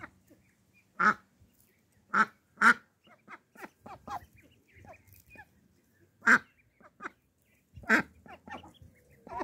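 Ducklings peep loudly and repeatedly close by.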